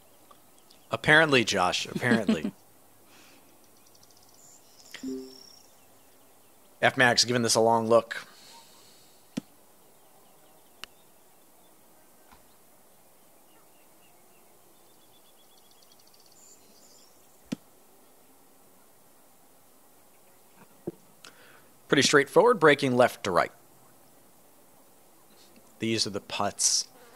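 A man speaks in short bursts close to a microphone.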